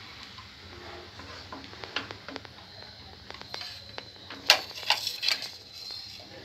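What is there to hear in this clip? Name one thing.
A wooden spoon scrapes and knocks against a metal pan while stirring.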